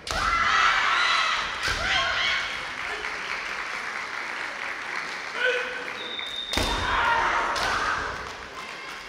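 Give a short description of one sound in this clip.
Young men shout sharp, drawn-out battle cries in a large echoing hall.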